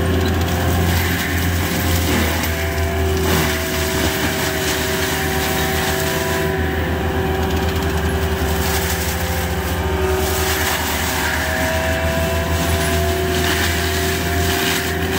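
Steel tracks clank and squeak over the ground.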